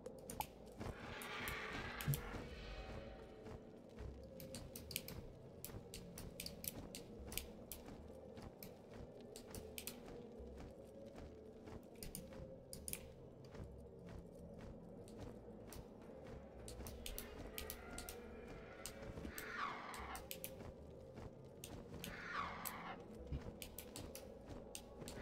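Large wings flap in quick, regular beats.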